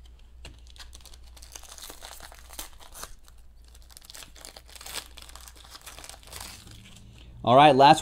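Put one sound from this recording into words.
Foil wrappers crinkle and rustle as they are torn open.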